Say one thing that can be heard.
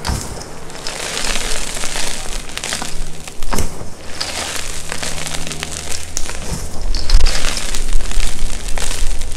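Powder pours and sifts down with a soft hiss.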